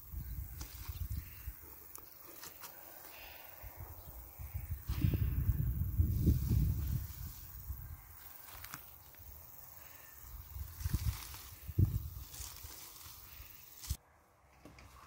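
A rake scratches through cut grass.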